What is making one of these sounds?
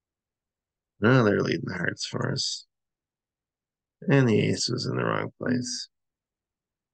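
A man speaks calmly and close up, in short phrases.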